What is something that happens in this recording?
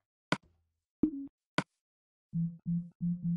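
Short game menu clicks sound.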